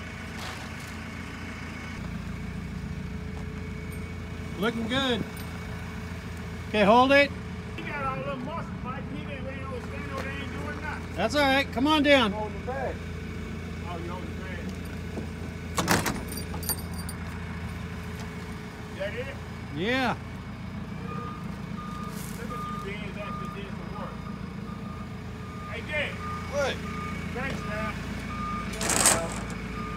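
A forklift engine idles with a steady low hum.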